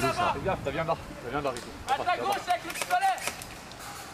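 A man shouts loudly outdoors nearby.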